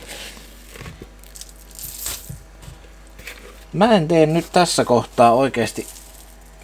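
Soft dough pats and squishes between hands.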